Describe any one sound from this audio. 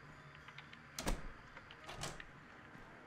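A metal door creaks and bangs open.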